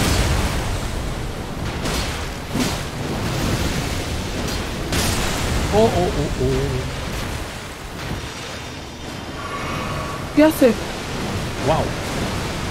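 Magic blasts and sword strikes crash loudly in a game.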